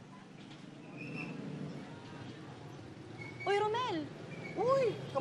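A busy street murmurs outdoors.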